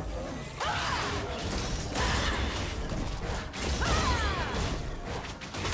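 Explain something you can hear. Magic spells whoosh and crackle as game characters fight.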